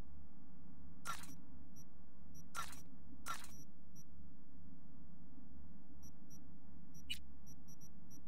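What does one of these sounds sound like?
Short game menu sounds swish and click.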